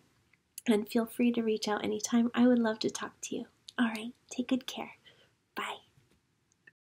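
A young woman speaks cheerfully and warmly, close to a microphone.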